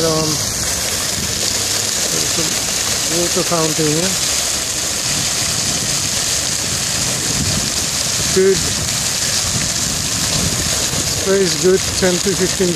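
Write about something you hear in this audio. A fountain jet splashes steadily into a pond.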